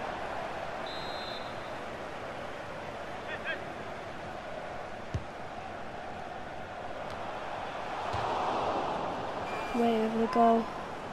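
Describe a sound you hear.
A large stadium crowd murmurs and cheers, swelling louder for a moment.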